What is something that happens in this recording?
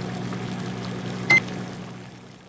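A button on a cooker clicks.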